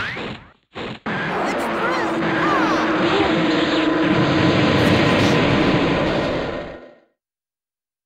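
An energy blast crackles and roars, then fades away.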